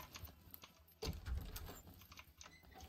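A wooden door swings open with a thump.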